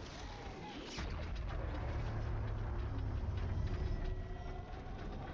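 A heavy blow lands with a deep booming crash.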